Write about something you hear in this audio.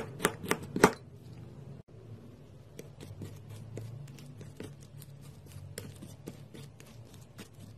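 Soft wet paint squelches as it is pressed and smeared.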